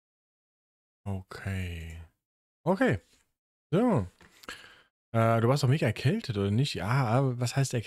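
A man talks into a close microphone in a relaxed, animated way.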